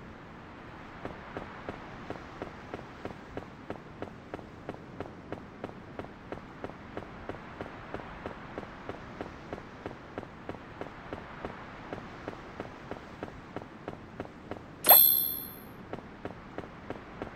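Quick, light footsteps patter steadily on grass.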